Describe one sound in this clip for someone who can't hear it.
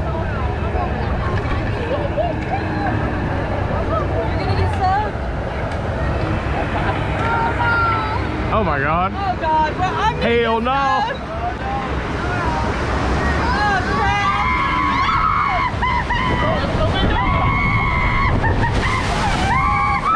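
Water rushes and churns steadily around a raft.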